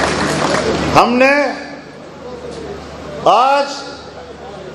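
An elderly man speaks forcefully into microphones, his voice booming through loudspeakers outdoors.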